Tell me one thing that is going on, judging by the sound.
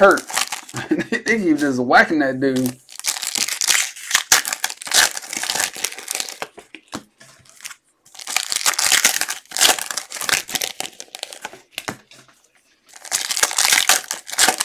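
A plastic wrapper crinkles and tears in hands.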